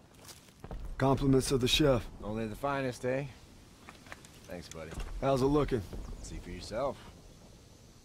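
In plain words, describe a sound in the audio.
A young man speaks casually up close.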